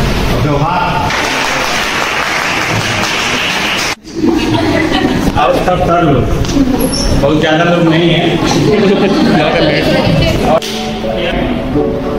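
A crowd of young people laughs and chatters.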